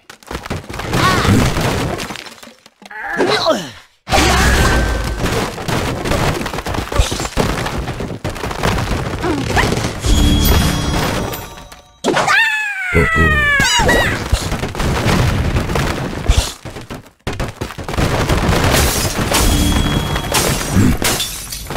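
Wooden blocks crash and clatter as structures collapse.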